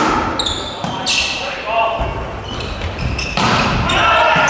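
A volleyball is struck hard with a sharp smack.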